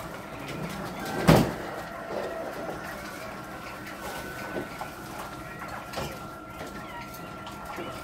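A wire cage door rattles and clanks.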